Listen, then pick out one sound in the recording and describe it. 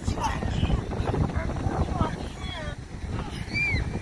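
A young girl squeals with delight.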